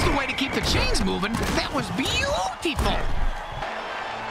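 Armoured players crash together in a violent tackle.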